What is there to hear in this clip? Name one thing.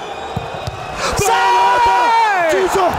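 A stadium crowd erupts in a loud roar of cheers.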